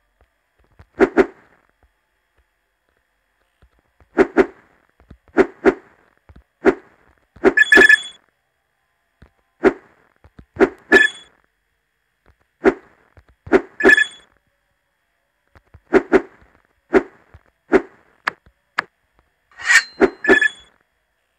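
Short cartoon jump sounds pop again and again.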